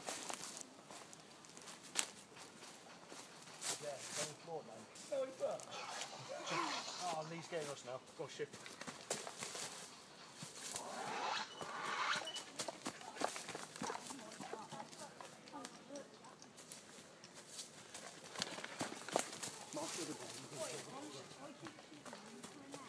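Footsteps crunch and rustle through dry leaves.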